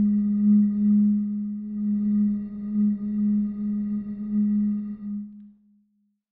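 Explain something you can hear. A synthesizer holds a steady low note that fades out at the end.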